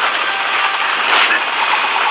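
Rubble crashes and scatters.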